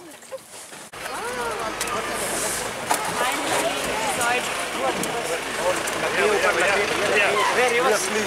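Several men talk quietly nearby.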